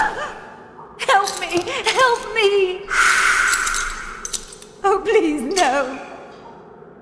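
A young woman pleads weakly for help.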